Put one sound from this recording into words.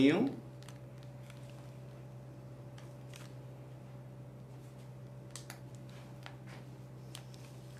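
A plastic piping bag crinkles softly as it is squeezed.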